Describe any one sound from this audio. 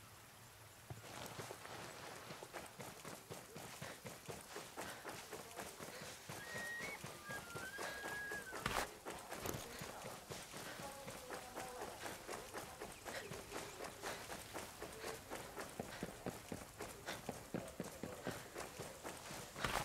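Heavy footsteps run quickly through grass and over hard ground.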